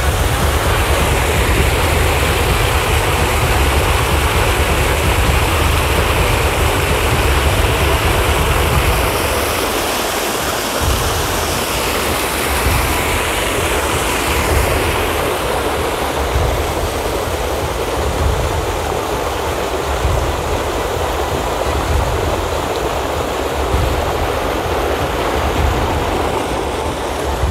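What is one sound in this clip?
Water gushes from a hose and splashes loudly into a pool of water.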